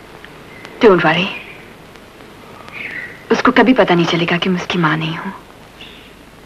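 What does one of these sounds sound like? A young man speaks softly, close by.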